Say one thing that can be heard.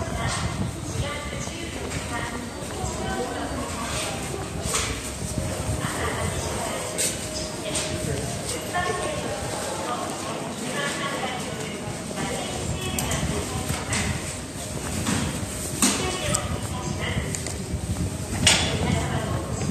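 Footsteps fall on tiled paving.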